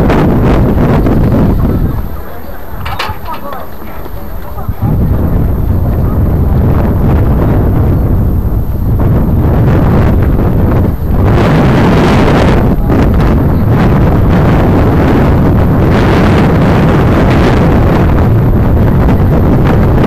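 Wind blows steadily outdoors with a low roar.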